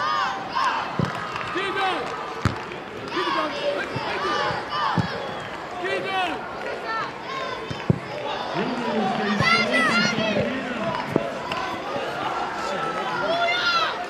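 A football thuds as it is kicked on grass.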